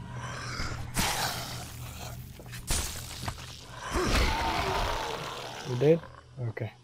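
A zombie growls and groans.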